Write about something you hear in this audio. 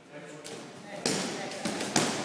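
A person lands with a soft thud on a padded mat.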